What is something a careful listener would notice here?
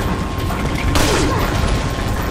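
A gunshot rings out.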